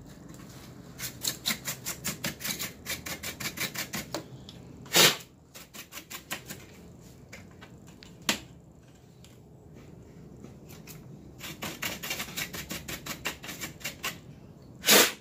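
A stiff brush scrubs quickly across a metal surface.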